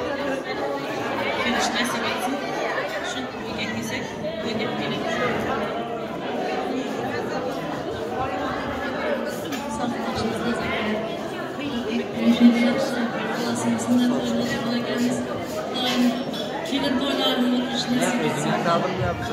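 A woman speaks with animation through a microphone, heard over loudspeakers in a large echoing hall.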